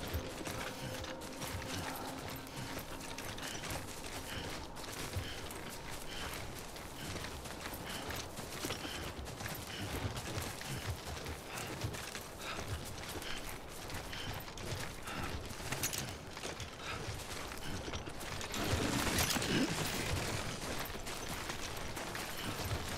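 Boots tread on grassy ground in steady footsteps.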